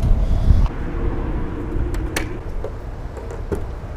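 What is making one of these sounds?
A metal latch clicks shut.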